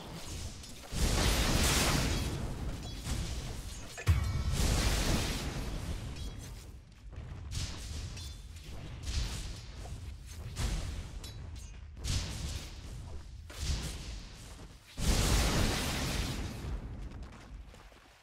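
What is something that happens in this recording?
Magic blasts whoosh and crash loudly.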